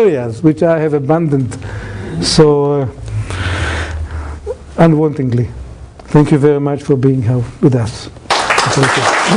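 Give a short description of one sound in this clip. A middle-aged man speaks with animation through a microphone in a large hall.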